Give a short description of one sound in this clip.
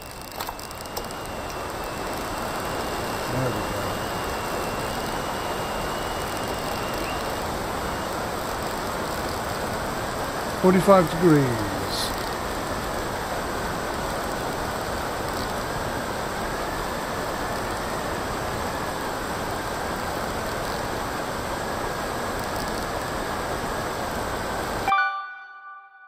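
Water rushes past a foiling catamaran at speed.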